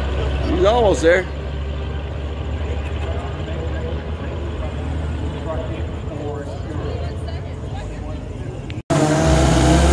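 A truck engine drones steadily in the distance.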